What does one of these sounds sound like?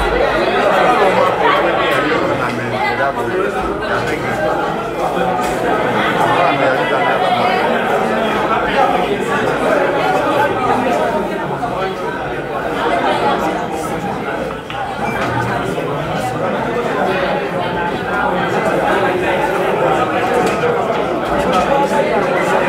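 A crowd of men chatter loudly all around.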